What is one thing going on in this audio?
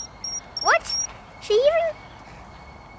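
A young boy speaks with excited little exclamations close by.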